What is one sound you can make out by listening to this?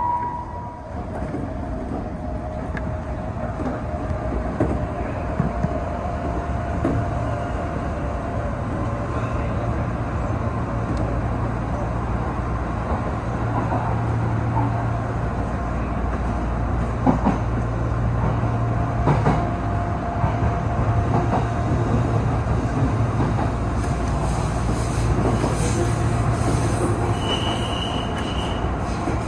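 A train's motor hums steadily from the cab as it runs along the tracks.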